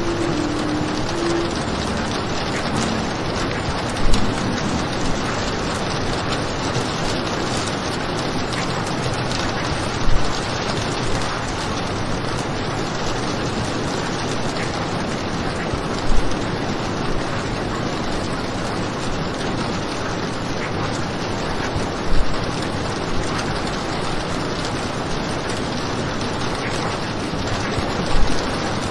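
Heavy rain pours steadily against a window.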